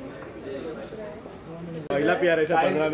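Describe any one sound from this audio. A woman talks on a phone nearby.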